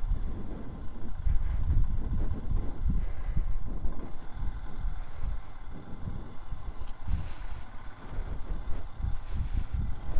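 Wind buffets a microphone.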